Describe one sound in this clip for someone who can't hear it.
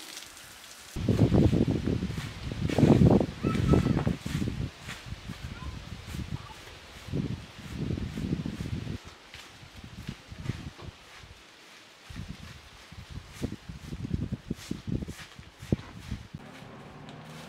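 A straw broom sweeps dry leaves across a stone floor.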